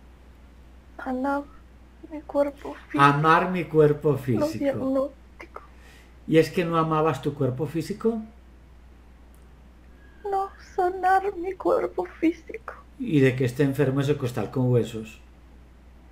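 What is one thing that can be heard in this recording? A middle-aged man speaks over an online call, in short bursts with pauses.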